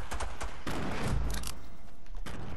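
A grenade explodes with a deep boom.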